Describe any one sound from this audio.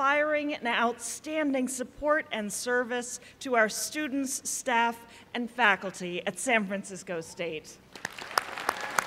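A woman speaks steadily through a microphone in a large hall.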